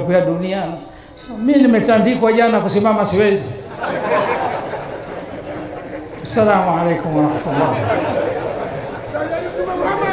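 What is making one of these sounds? An elderly man preaches with passion through a microphone in a room that echoes.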